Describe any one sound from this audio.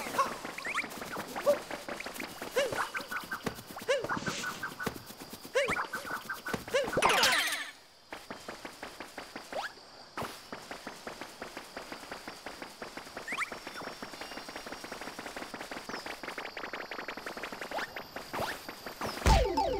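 Short cartoon jump and chirp sounds pop up.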